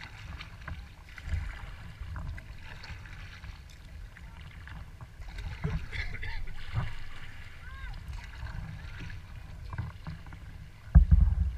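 Wind rumbles outdoors on open water.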